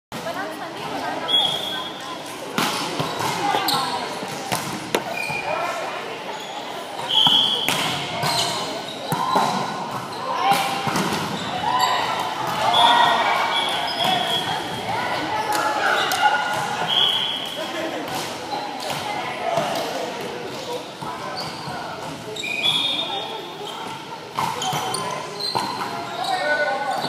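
Several people talk and call out across a large echoing gym.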